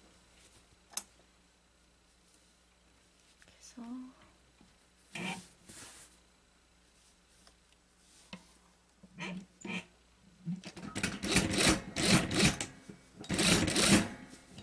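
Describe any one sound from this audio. Fabric rustles and slides as hands smooth and move it.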